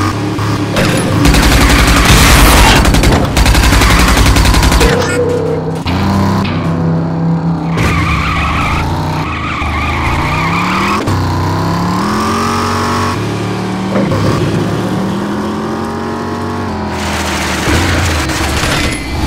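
A car engine roars and revs steadily.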